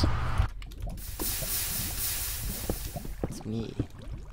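Water pours out of a bucket with a rushing splash.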